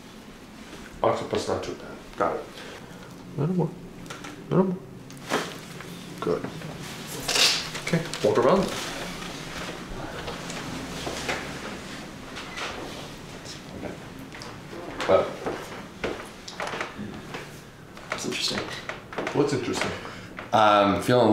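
A man talks calmly nearby.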